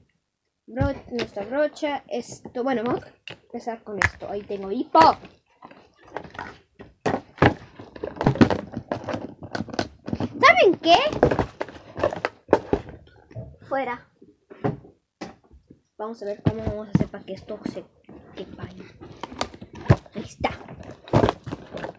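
A cardboard box creaks and thumps as its trays are opened and closed.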